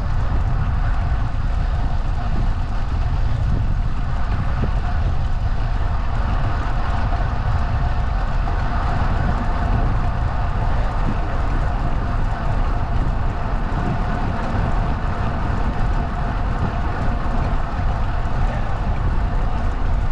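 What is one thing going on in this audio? Wind rushes loudly over a moving rider outdoors.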